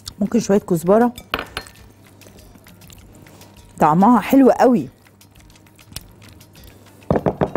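A spatula scrapes and stirs a thick mixture in a glass bowl.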